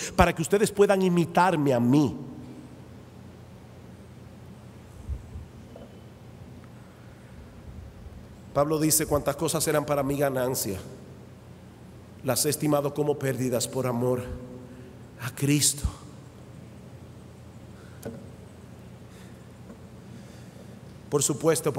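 A middle-aged man speaks with animation into a microphone, in bursts with long pauses.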